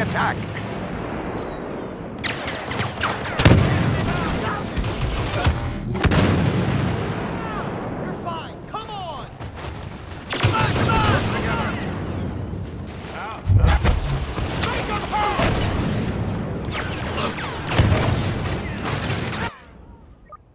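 Blaster shots fire rapidly in bursts.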